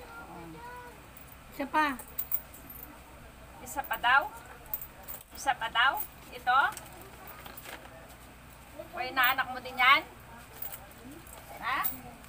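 Plastic packets rustle and crinkle in someone's hands.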